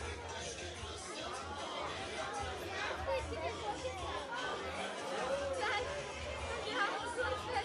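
Women and children chatter together nearby in a lively crowd.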